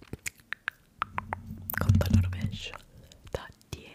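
A soft brush sweeps and rustles against a microphone.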